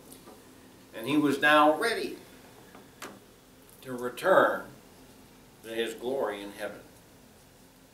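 A middle-aged man speaks slowly and deliberately, with long pauses between phrases.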